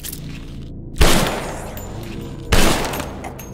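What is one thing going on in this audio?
A gunshot bangs loudly with a short echo.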